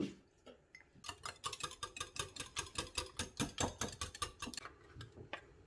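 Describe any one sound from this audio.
A wire whisk beats eggs in a glass jug.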